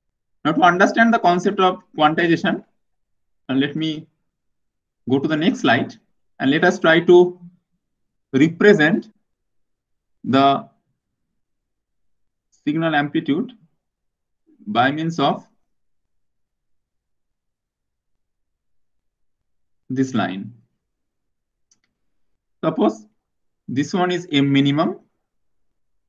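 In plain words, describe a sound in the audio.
A man lectures calmly into a microphone, in short phrases with pauses.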